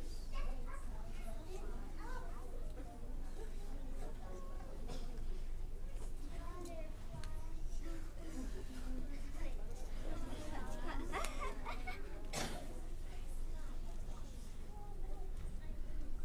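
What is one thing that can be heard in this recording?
Many young children chatter and call out together in a large echoing hall.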